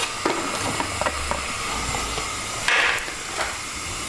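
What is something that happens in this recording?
Chopped vegetables drop into a simmering sauce.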